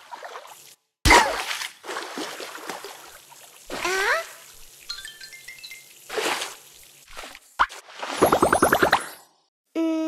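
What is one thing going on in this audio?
A shower sprays water with a hissing rush.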